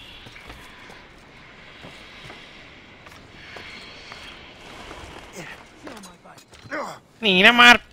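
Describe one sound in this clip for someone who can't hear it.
Boots scuff and thump on wooden boards as a man climbs.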